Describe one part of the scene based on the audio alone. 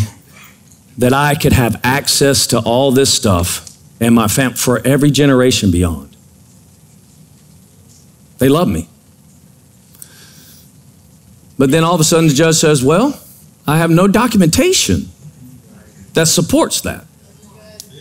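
A middle-aged man speaks with animation through a microphone, in bursts with pauses.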